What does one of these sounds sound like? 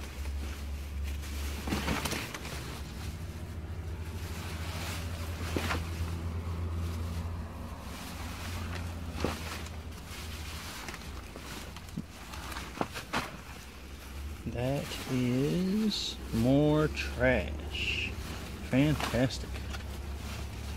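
Plastic bags rustle and crinkle as they are handled.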